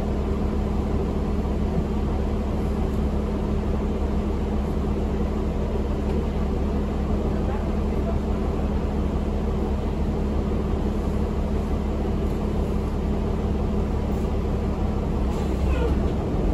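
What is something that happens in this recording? A bus engine hums steadily at idle.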